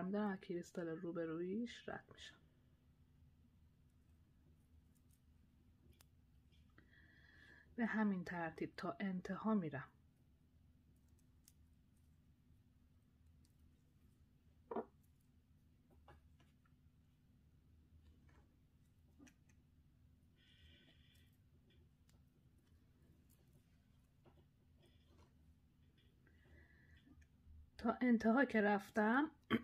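Small glass beads click softly against each other.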